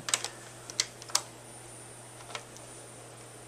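A small plastic stick clicks as it is pushed into a port.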